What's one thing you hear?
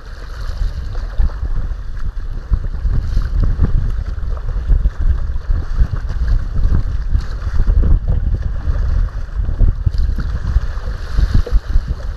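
Choppy water splashes and laps against a kayak's hull.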